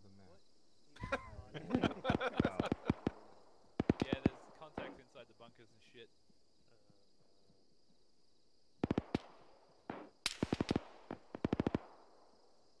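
Rifle shots crack in rapid bursts.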